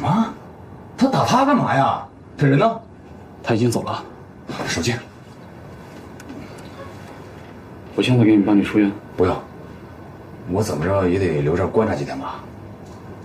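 A young man speaks close by, in a questioning tone.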